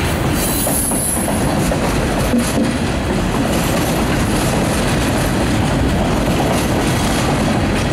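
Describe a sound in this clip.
A railroad crossing bell rings.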